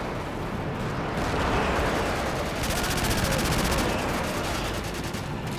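An explosion booms close by and rumbles.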